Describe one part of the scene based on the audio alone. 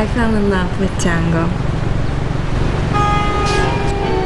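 Cars drive past on a busy street.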